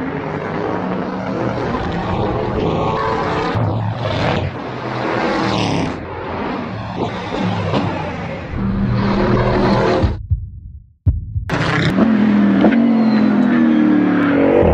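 A race car engine roars at high revs and shifts through gears as the car speeds past.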